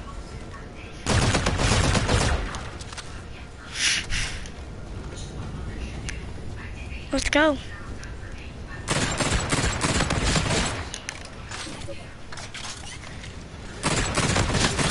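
Gunfire rattles in loud, fast bursts.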